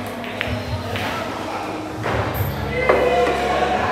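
A cue stick strikes a pool ball with a sharp click.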